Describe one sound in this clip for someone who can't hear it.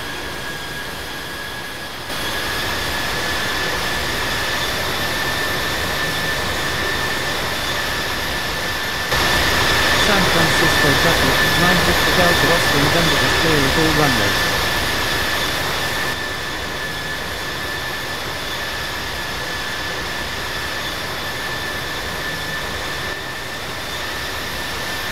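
Jet engines roar and whine steadily.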